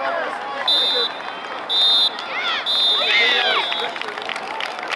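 A referee's whistle blows several short, shrill blasts.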